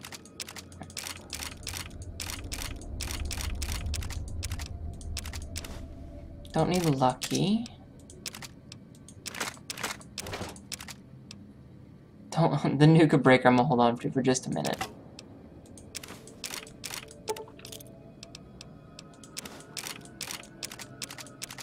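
Short menu clicks tick rapidly as a list scrolls.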